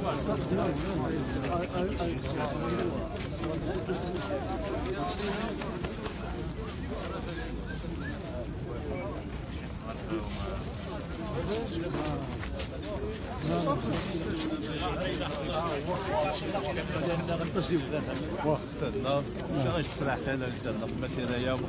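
Several men talk at once close by, outdoors.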